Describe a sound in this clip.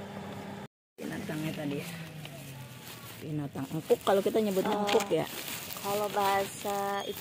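A cloth sack rustles as it is pulled open.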